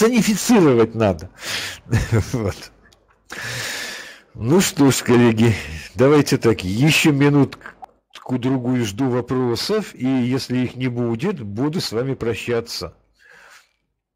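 A middle-aged man speaks calmly through a microphone on an online call.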